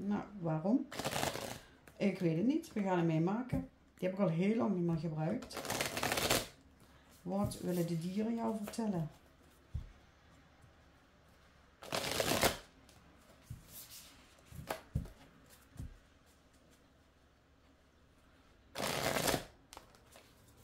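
Playing cards riffle and flutter as a deck is shuffled by hand.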